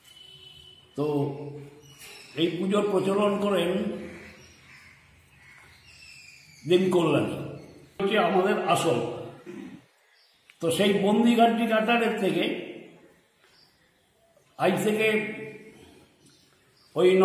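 An elderly man speaks calmly into a microphone, close by, in pauses.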